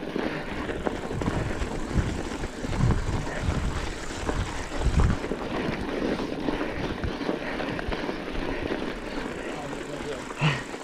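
Bicycle tyres crunch over packed snow.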